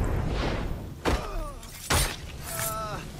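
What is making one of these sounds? Sharp blows land in quick succession.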